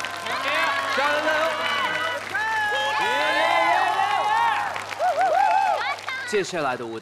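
A crowd of young people cheers and shrieks excitedly.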